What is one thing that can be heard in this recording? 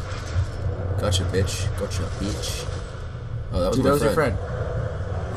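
A monster snarls and growls close by.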